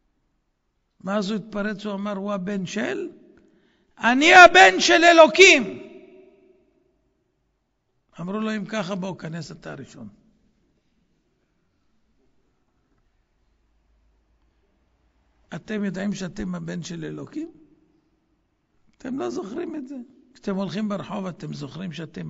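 An elderly man speaks with animation into a microphone, heard over a loudspeaker.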